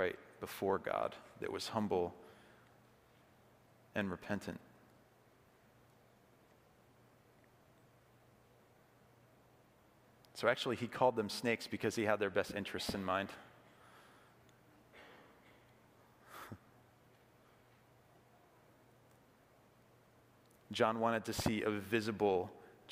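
A man speaks calmly into a microphone with long pauses, in a large echoing hall.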